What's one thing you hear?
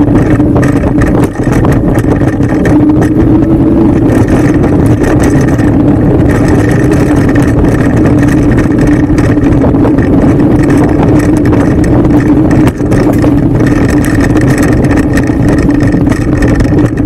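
Tyres rumble and crunch over a dirt trail.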